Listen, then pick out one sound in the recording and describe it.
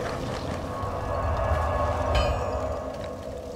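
A burst of smoke whooshes out with a soft rush.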